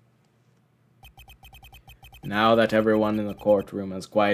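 Quick electronic blips tick along.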